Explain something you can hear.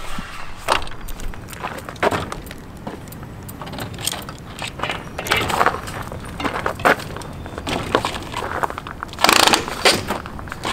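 A bicycle clanks against a metal rack.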